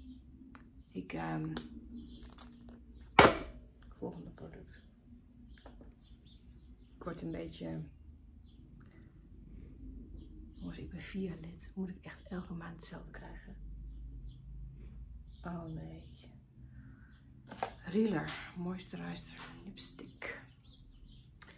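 A woman talks calmly and close by, with pauses.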